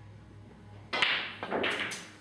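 A pool cue strikes the cue ball.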